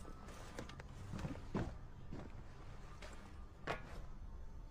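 Heavy armoured footsteps thud on a metal floor.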